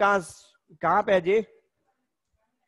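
A man speaks briefly through a headset microphone, as if on an online call.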